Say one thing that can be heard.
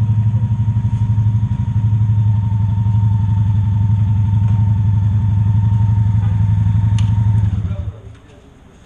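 A motorcycle engine idles close by with a deep, steady rumble, then cuts off.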